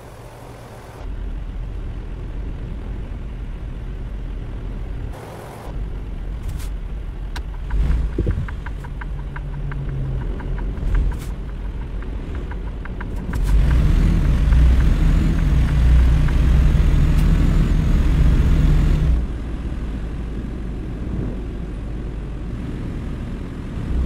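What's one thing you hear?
A truck engine rumbles low and steadily, growing louder as it speeds up.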